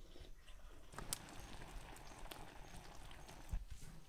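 Food sizzles in a pan over a fire.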